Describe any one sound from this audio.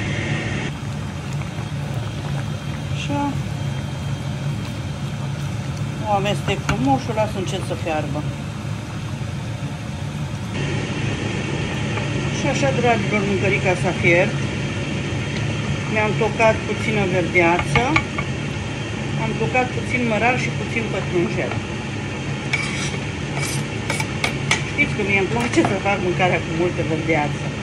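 A wooden spoon stirs food in a metal pot.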